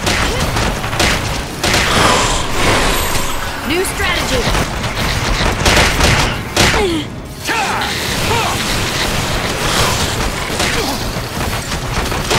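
Magic blasts burst and whoosh.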